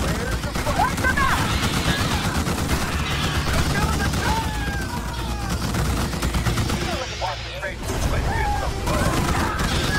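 Guns fire in rapid bursts during a battle.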